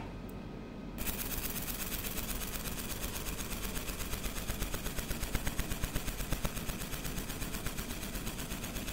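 A fiber laser engraves steel with a rapid buzzing hiss.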